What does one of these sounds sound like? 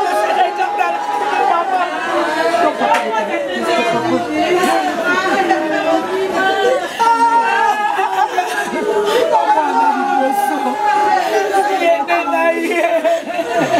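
A young woman sobs close by.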